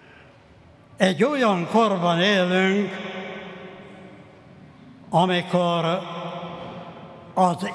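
An elderly man chants slowly into a microphone in an echoing hall.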